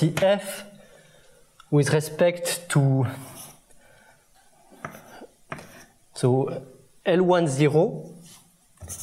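A man lectures calmly.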